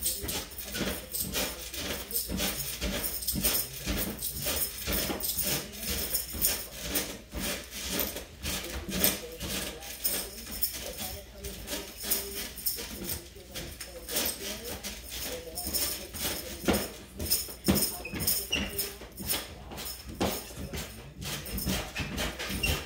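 A mini trampoline creaks and thumps in a steady rhythm as a person bounces on it.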